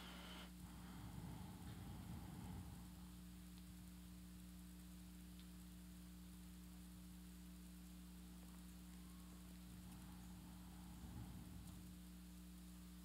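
An older man speaks softly and slowly into a microphone.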